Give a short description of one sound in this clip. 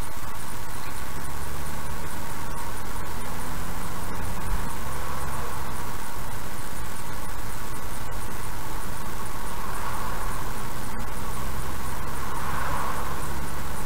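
A car engine hums low and grows slightly louder as the car speeds up.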